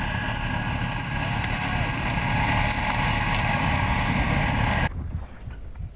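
A tracked armoured vehicle's engine roars loudly as it drives over rough ground.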